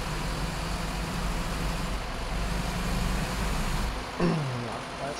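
A diesel coach bus engine drones as the bus drives along a dirt road.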